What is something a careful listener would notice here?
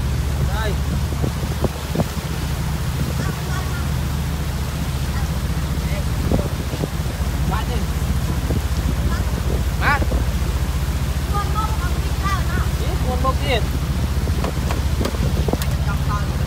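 A boat's motor hums steadily and closely.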